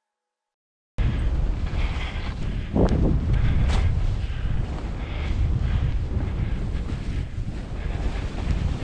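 Wind rumbles loudly against a microphone outdoors.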